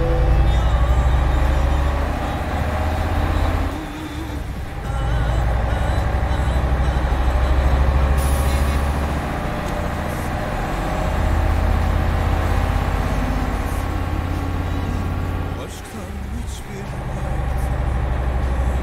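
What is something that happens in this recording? A heavy bus engine rumbles steadily, briefly dropping away now and then.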